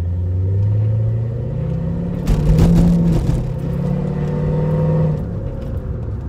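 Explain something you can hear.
A car engine revs loudly, its pitch rising through the gears.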